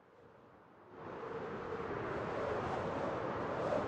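Water rushes and splashes nearby, growing louder.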